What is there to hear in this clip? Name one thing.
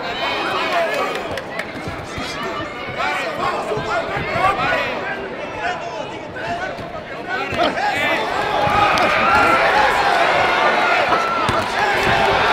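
A crowd cheers and shouts in a large arena.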